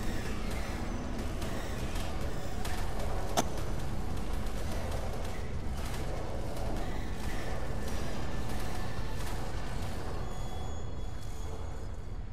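Creatures growl and snarl as they fight.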